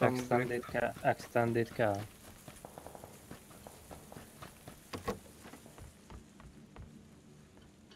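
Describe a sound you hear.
Footsteps crunch over ground and then a wooden floor.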